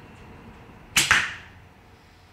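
A bowstring snaps as an arrow is shot.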